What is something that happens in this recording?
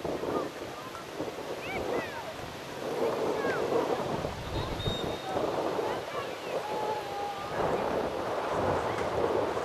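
A crowd of spectators chatters and calls out outdoors.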